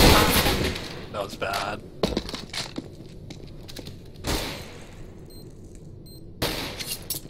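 Gunshots bang out sharply.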